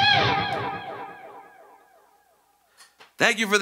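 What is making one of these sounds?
An electric guitar chord rings out and slowly fades.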